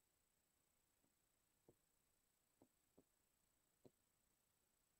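A marker taps softly against a board.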